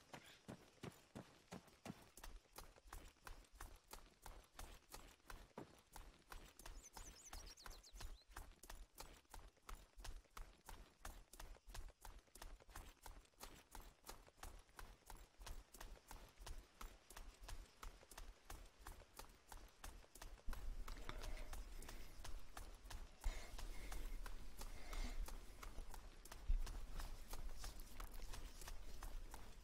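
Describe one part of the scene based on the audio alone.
Footsteps crunch quickly over rough, stony ground.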